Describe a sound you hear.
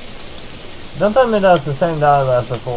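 A man speaks up close through a microphone.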